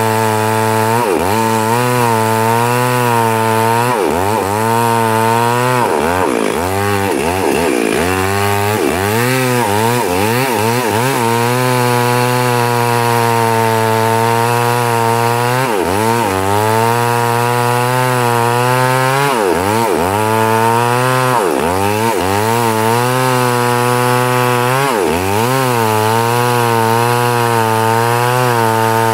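A chainsaw engine roars loudly, rising and falling in pitch as it cuts through a log.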